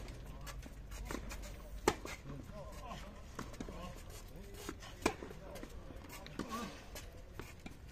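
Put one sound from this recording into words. A tennis ball is struck with a racket, with sharp pops.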